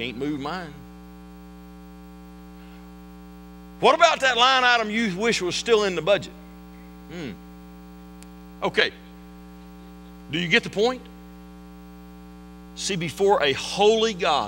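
A middle-aged man speaks with feeling into a microphone, pausing often.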